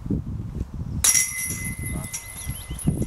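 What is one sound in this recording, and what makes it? A disc golf disc strikes the metal chains of a basket, making them jingle and rattle.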